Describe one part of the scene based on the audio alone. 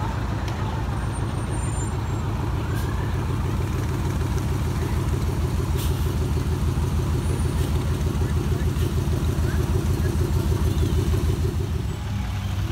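A car engine rumbles loudly and deeply nearby as it rolls slowly past.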